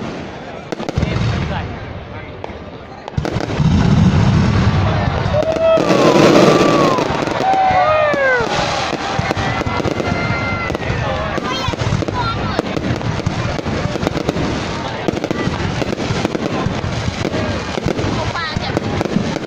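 Fireworks boom and crackle overhead.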